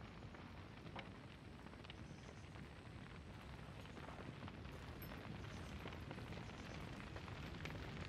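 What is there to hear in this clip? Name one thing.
A large fire roars and crackles nearby.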